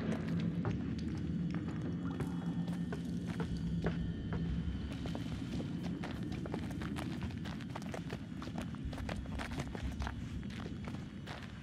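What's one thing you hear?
Footsteps crunch slowly over gravel and wooden boards.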